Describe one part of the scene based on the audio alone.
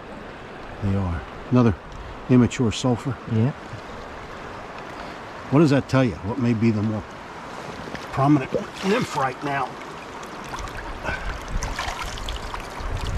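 Shallow water trickles and burbles steadily.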